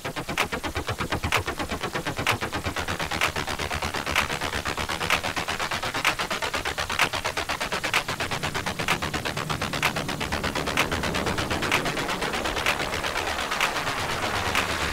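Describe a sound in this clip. Electronic dance music with a fast, steady beat plays.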